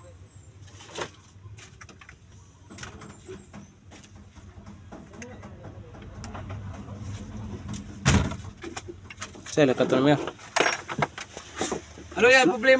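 Metal parts clink and knock as hands work on an engine.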